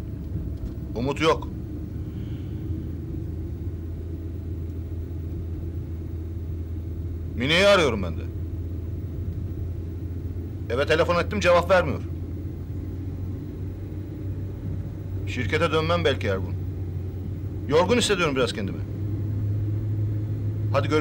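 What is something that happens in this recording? A middle-aged man talks calmly on a phone in short bursts.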